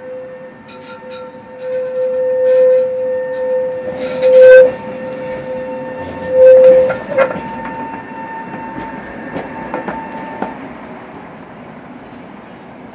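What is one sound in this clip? A tram rumbles and clatters over the rails as it passes close by.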